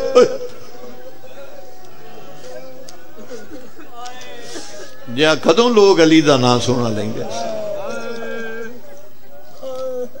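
A man sings with feeling through a microphone, heard over a loudspeaker.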